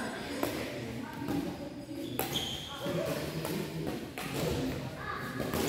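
People chatter nearby in a large echoing hall.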